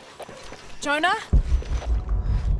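A young woman calls out.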